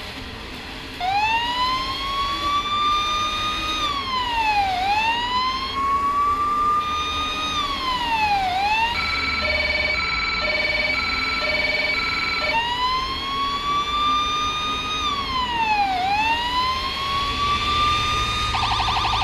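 A siren wails, rising and falling, then switches to a fast yelp for a few seconds.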